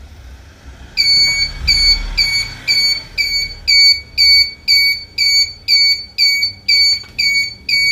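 A small electronic alarm beeps in a fast, steady, repeating pattern.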